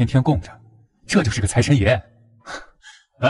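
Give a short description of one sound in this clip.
Another young man speaks in reply.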